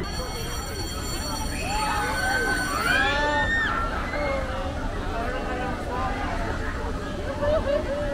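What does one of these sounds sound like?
Riders on a spinning fairground ride scream.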